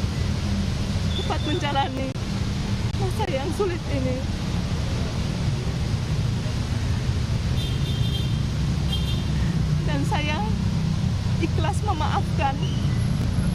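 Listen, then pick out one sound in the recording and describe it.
Outdoor traffic rumbles steadily in the background.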